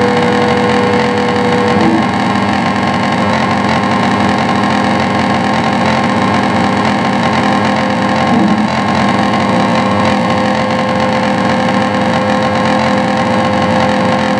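Dense electronic noise drones and buzzes loudly from amplifiers, with a steady high tone running through it.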